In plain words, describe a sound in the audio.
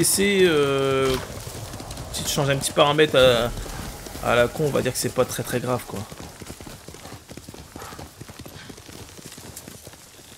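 A horse's hooves thud at a gallop.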